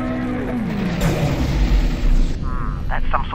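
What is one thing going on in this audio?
Energy beams fire with a deep, roaring blast.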